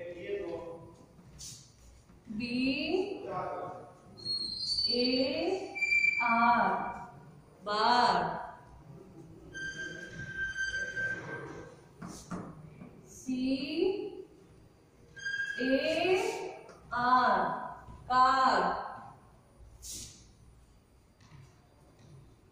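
A woman speaks clearly and slowly, as if teaching, close by.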